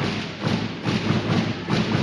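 A volleyball is struck hard at the net.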